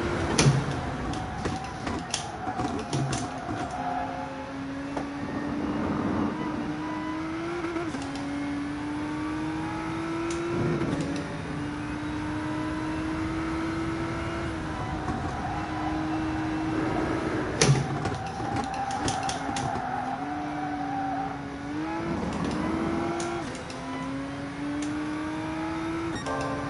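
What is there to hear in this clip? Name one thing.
A racing car engine whines and climbs in pitch, dropping briefly with each gear change.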